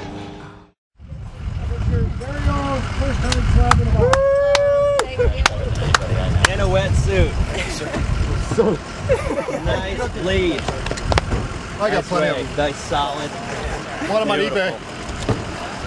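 Men talk and cheer nearby outdoors.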